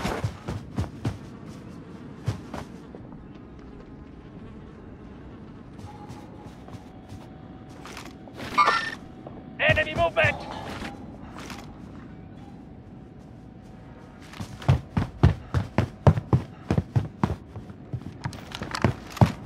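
Footsteps thud quickly on wooden floors and stairs.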